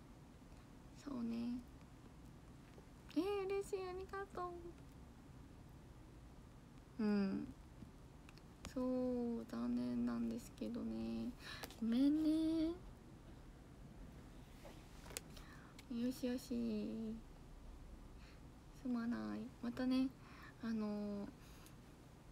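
A young woman talks softly and cheerfully close to a microphone, in short bursts with pauses.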